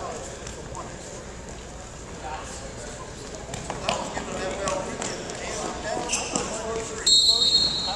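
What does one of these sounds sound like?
Wrestlers' feet shuffle and scuff on a wrestling mat.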